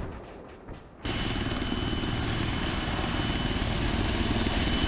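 A helicopter's rotor thuds and roars loudly nearby.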